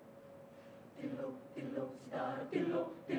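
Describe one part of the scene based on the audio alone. A large choir begins singing together in a big echoing hall.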